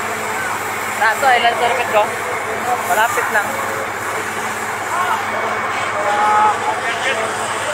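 Men shout excitedly nearby.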